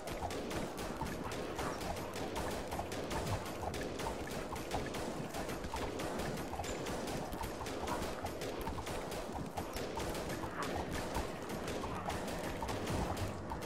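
Rapid gunfire crackles in a distant battle.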